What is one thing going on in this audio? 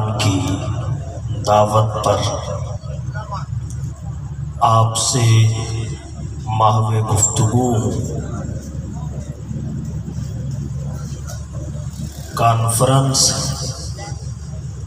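A man speaks forcefully into a microphone through loudspeakers, with bursts of loud delivery.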